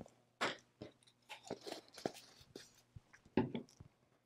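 Small objects tap lightly on a tabletop.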